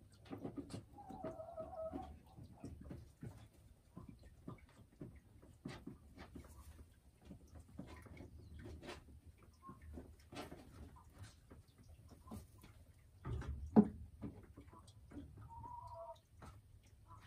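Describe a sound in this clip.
A hen clucks softly and low.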